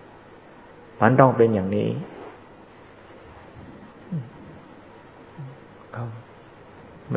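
An elderly man speaks calmly in short bursts.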